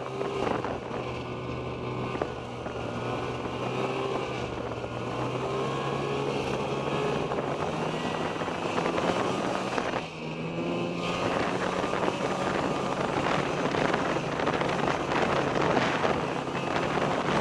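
A snowmobile engine hums steadily close by.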